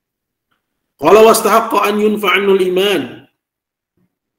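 An elderly man chants in a steady, melodic voice over an online call.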